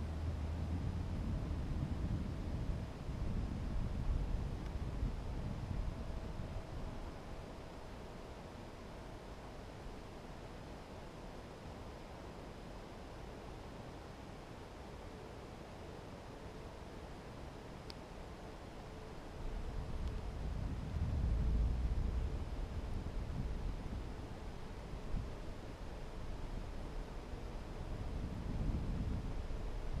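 Wind rumbles and buffets against the microphone in gusts.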